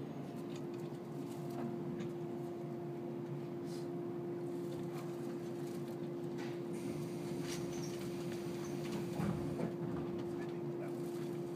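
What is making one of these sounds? A train hums and rumbles steadily as it rolls slowly into a station.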